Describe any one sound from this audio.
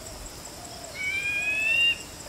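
A small bird gives a long, slowly rising whistle.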